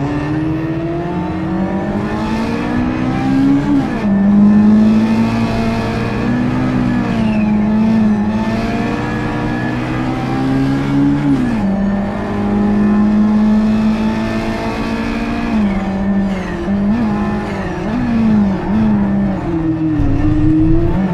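A race car engine roars loudly, rising in pitch and dropping sharply with each gear change.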